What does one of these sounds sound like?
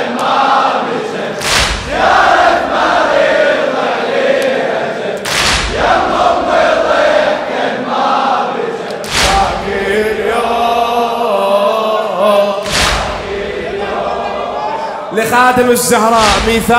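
A man sings a lament through a microphone in a large echoing hall.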